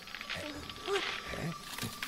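A young boy gasps in alarm.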